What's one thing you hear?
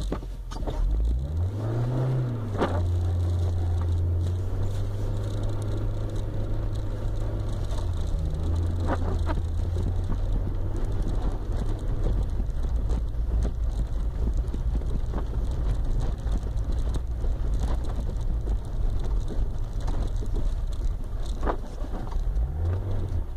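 Tyres crunch and rumble over packed snow.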